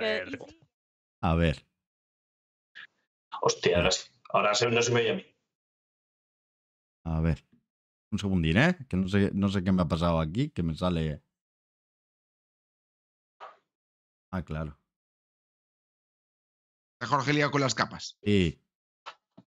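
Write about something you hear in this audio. Young men talk with animation over an online call.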